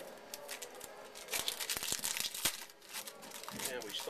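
Cards shuffle and rustle in a man's hands.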